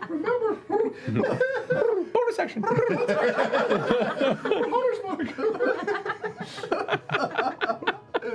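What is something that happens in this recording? A young woman laughs with high squeals.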